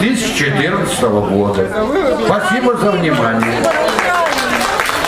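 An elderly man speaks into a microphone, heard through loudspeakers in a large hall.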